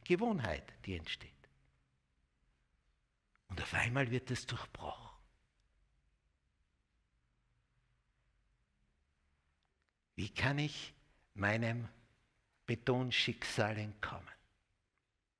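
An older man speaks with animation through a clip-on microphone, pausing between phrases.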